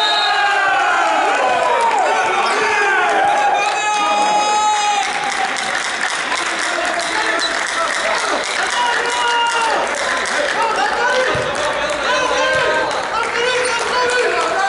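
A volleyball is struck and thuds repeatedly.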